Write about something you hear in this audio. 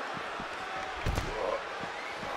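A heavy body slams onto a hard floor with a thud.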